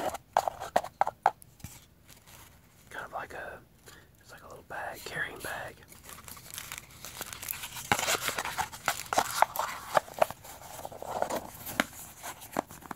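Cardboard and paper rustle and crinkle as hands handle a small box.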